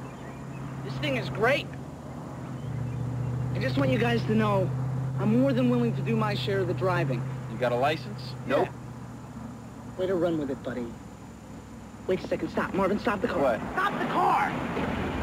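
Young men talk with animation in an open car.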